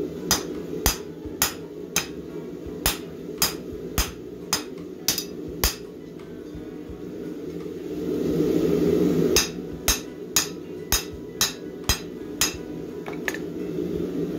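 A hammer rings sharply on metal over an anvil in quick, steady blows.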